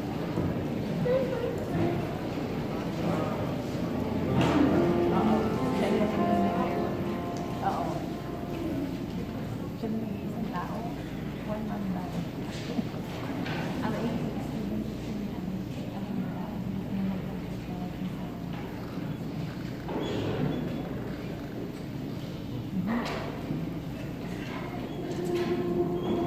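A woman speaks calmly into a large echoing hall.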